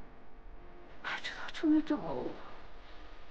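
A young woman speaks in a shaky, surprised voice, close by.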